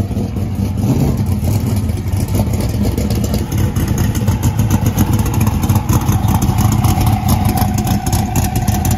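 A race car engine crackles and pops with rapid sharp bursts.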